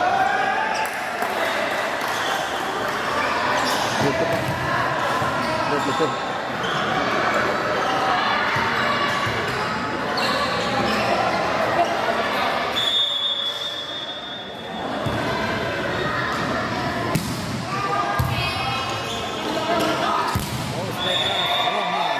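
A volleyball thuds sharply as players hit it.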